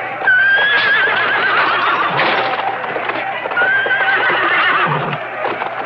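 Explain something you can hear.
Horses whinny loudly.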